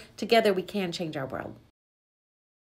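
A middle-aged woman speaks warmly and close to a microphone.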